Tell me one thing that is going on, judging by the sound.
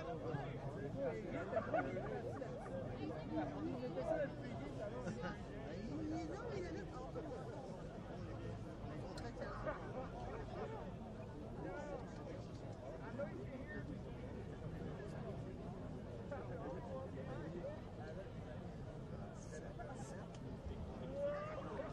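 A crowd of spectators chatters outdoors at a distance.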